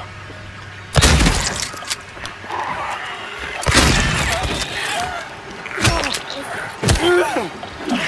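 A pistol fires loud shots that echo in a narrow space.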